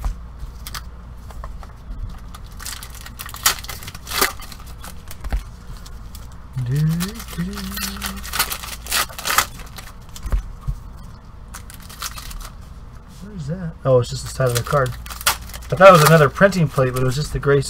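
Foil wrappers crinkle and rustle as packs are torn open by hand.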